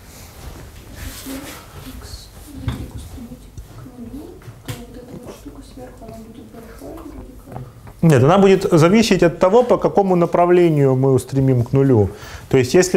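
A man lectures in an echoing room, heard through a microphone.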